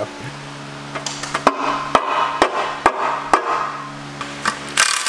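A rubber mallet knocks on a metal engine part.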